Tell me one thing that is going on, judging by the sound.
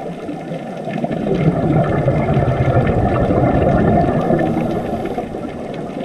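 Scuba bubbles rumble and gurgle loudly underwater, then die away.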